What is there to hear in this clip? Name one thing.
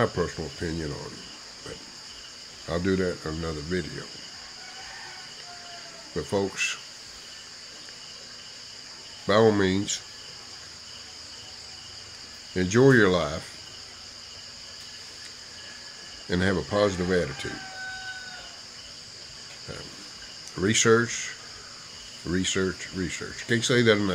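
A middle-aged man talks calmly and close up, in short bursts with pauses.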